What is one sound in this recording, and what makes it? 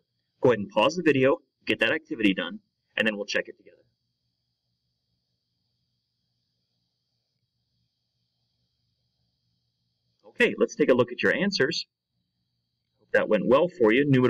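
A man speaks calmly and clearly close to a microphone, in short phrases with pauses.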